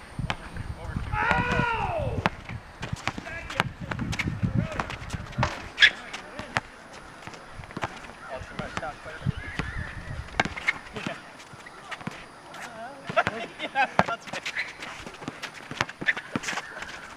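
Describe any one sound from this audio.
A basketball bounces repeatedly on an outdoor court.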